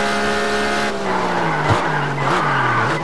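Tyres screech as a car takes a bend.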